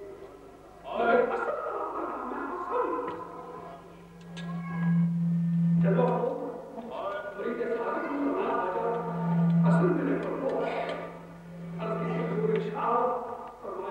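An elderly man speaks with feeling into a microphone.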